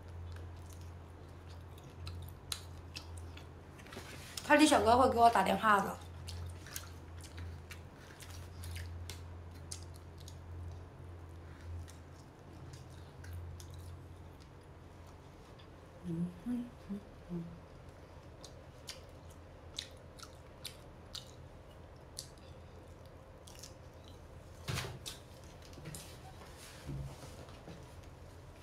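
A young woman chews food with soft smacking sounds.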